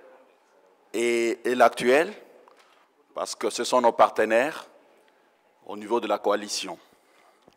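An older man speaks steadily into a handheld microphone.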